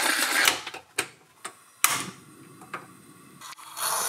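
A gas stove clicks as it is lit.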